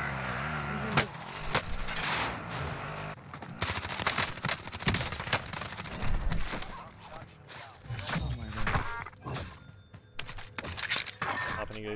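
Guns fire in quick bursts of shots.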